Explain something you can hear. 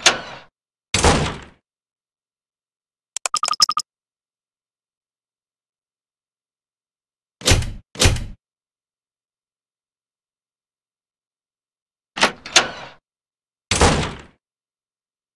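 A door thuds shut.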